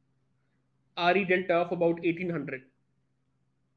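A man speaks calmly through a microphone, as if explaining.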